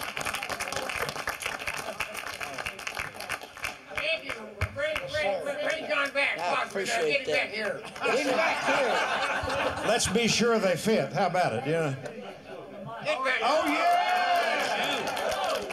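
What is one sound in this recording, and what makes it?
An elderly man talks and laughs.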